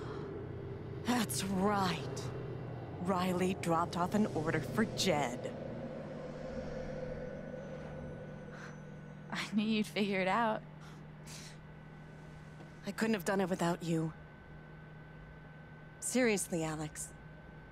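An elderly woman speaks warmly and cheerfully, heard through a recording.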